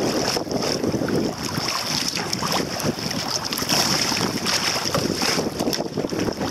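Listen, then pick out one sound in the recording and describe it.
Choppy waves slap against a kayak hull.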